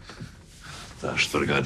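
A young man speaks in a tense voice.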